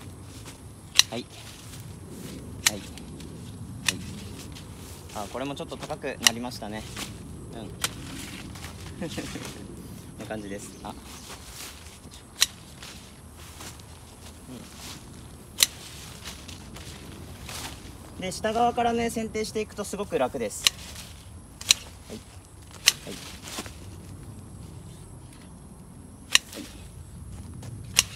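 Long-handled shears snip through branches with sharp clicks.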